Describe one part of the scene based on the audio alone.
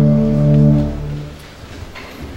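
A band plays a final chord that rings out and fades in an echoing hall.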